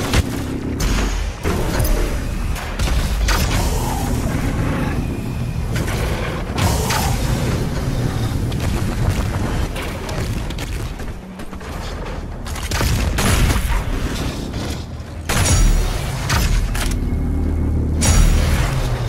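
Heavy guns fire in loud, rapid blasts.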